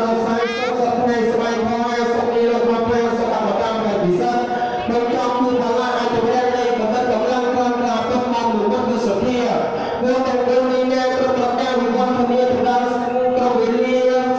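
A group of men and women chant together in a steady, droning rhythm.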